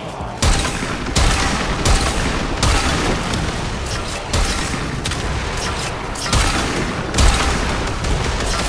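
Guns fire in loud, repeated bursts with heavy booms.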